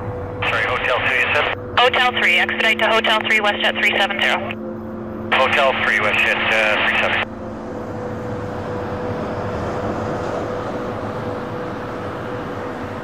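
A jet airliner's engines roar steadily as it taxis nearby.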